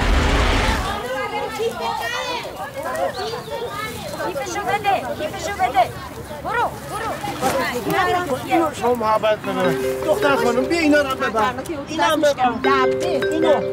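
Young women chatter and call out to one another outdoors.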